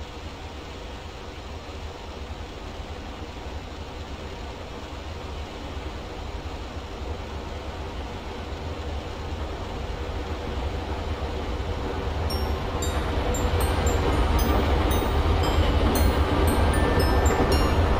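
A train approaches and rumbles past, growing steadily louder.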